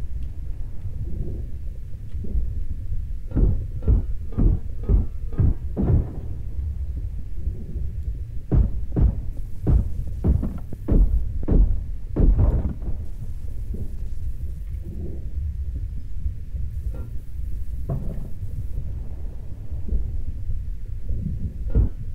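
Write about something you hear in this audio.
Low underwater rumble murmurs steadily.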